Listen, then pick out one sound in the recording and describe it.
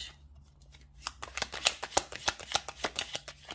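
Playing cards are shuffled with quick, crisp flicks.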